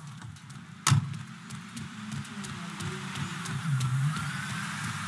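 Footsteps run quickly over pavement.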